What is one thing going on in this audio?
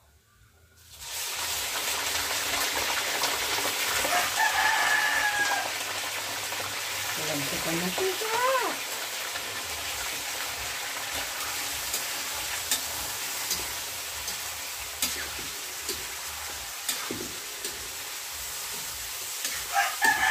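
Meat sizzles and spits loudly in hot oil.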